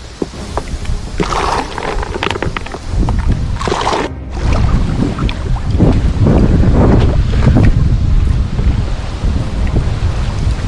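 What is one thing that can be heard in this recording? Water laps against the side of an inflatable boat.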